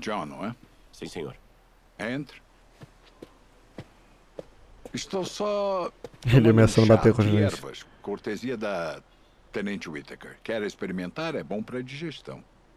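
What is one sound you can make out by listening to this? A younger man answers in a low, rough voice.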